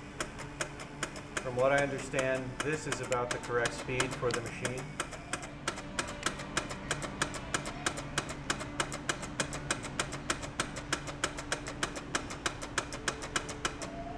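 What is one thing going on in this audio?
A ticker machine clicks rapidly and steadily.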